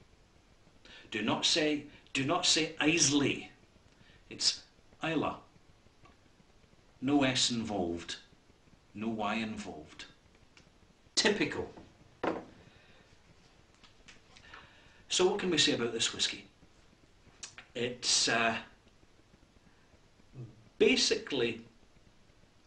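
A middle-aged man talks calmly and expressively close to a microphone, with pauses.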